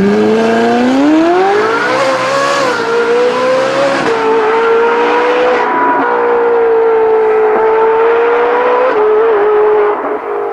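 A sports car engine revs up loudly and roars as the car speeds away.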